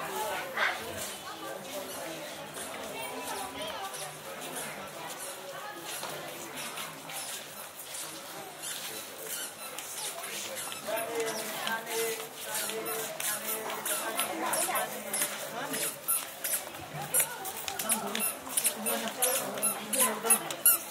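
A crowd of people chatters in the distance, outdoors.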